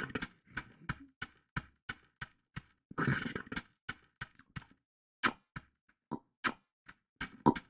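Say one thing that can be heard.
Footsteps patter quickly on dry ground.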